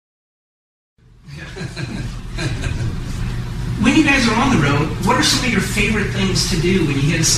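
Several men laugh together close by.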